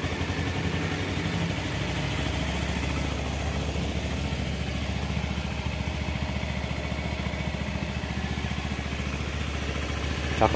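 A motorcycle engine idles with a steady, throbbing rumble close by.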